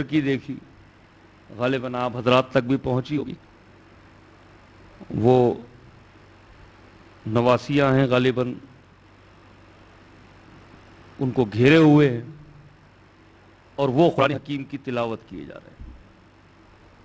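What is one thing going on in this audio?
A middle-aged man speaks with feeling into a microphone, in short bursts with pauses between.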